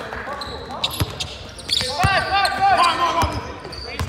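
A basketball bounces on the floor with loud thuds.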